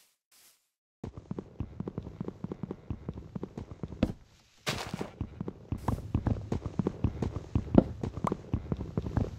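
Wood is hacked at in quick, repeated knocks.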